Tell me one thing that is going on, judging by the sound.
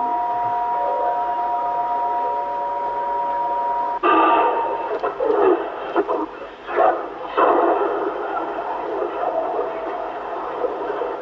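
A radio receiver hisses and crackles with static as it is tuned.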